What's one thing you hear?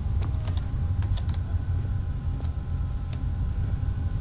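Footsteps fall on a stone floor.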